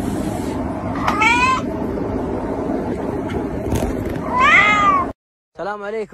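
A cat meows loudly.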